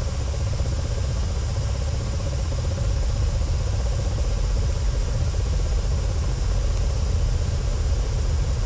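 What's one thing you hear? A helicopter engine and rotor drone steadily with a deep, thumping rumble.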